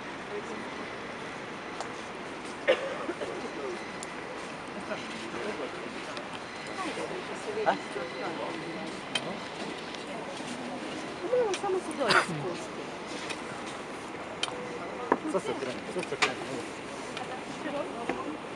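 A group of men and women chat quietly nearby in a large open space.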